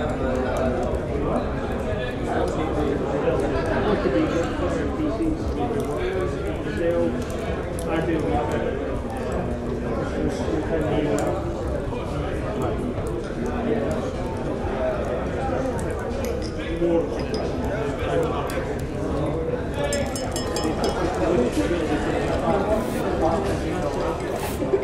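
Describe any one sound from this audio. A crowd of men and women chatters and murmurs all around.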